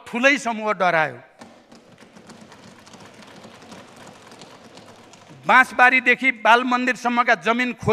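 An elderly man speaks steadily into a microphone in a large hall.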